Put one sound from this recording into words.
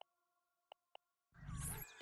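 Two soft game menu clicks sound.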